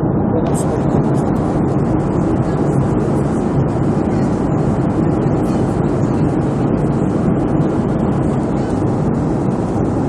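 The engines of a jet airliner drone steadily, heard from inside the cabin while cruising.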